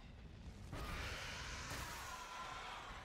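A loud explosion booms in a video game.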